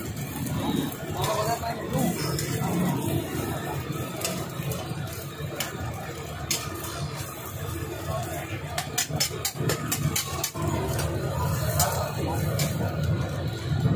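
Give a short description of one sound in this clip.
Eggs sizzle on a hot griddle.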